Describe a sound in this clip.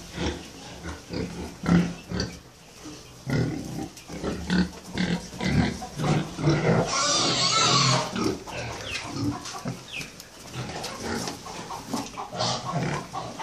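Pigs grunt close by.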